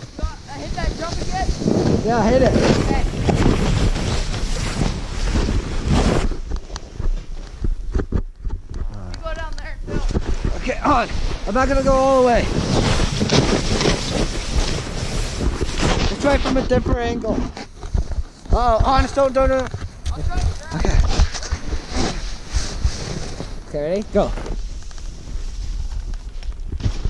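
A snowboard hisses and scrapes through deep snow.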